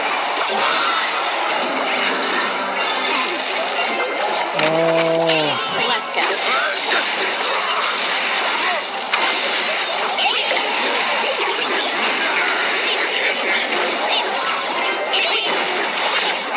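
Game music plays with a busy mix of battle sound effects.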